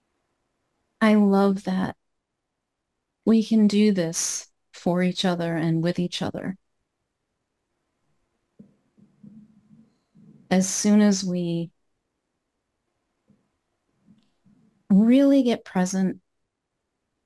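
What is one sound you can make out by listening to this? A woman speaks calmly and with feeling through a microphone on an online call, with pauses.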